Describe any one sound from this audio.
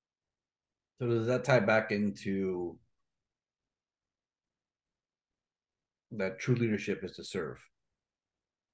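A man speaks calmly over an online call, in two short bursts.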